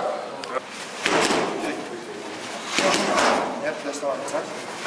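Punches smack against padded mitts.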